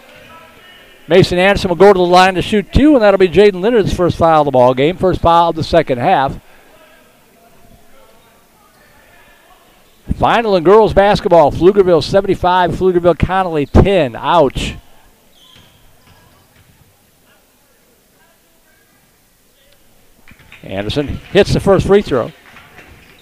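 Sneakers squeak on a hardwood court as players move.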